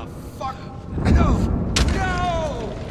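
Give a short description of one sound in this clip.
A burst of fire explodes with a loud whoosh.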